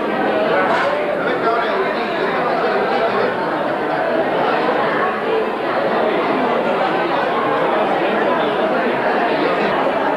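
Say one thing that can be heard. A crowd of men and women chatter loudly all around, indoors.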